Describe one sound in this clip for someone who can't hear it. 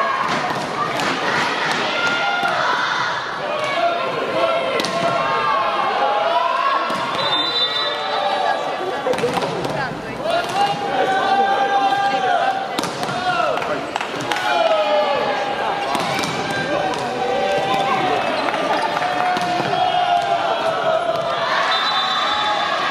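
A large crowd chants and cheers in an echoing hall.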